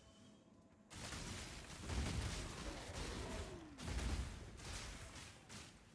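Magic blasts boom and burst loudly.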